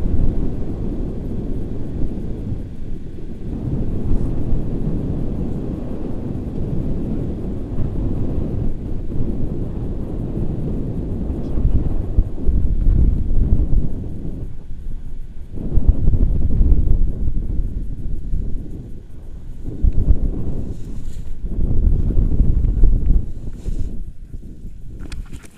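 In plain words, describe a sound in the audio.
Wind roars loudly against a microphone outdoors, then dies down.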